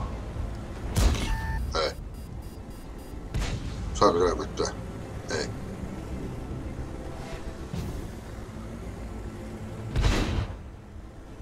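A tank gun fires with a loud boom.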